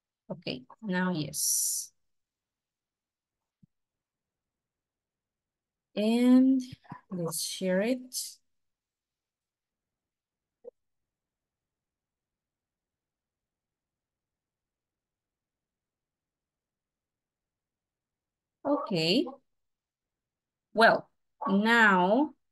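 A woman speaks calmly over an online call, in short bursts with pauses.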